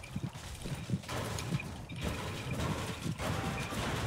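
A pickaxe strikes a metal bin.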